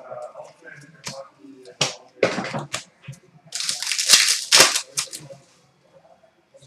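Cards shuffle and slap onto a glass counter.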